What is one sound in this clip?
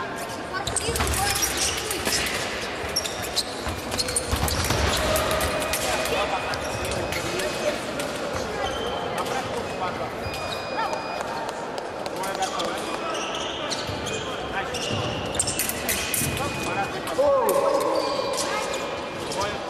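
Fencing blades clash and clink.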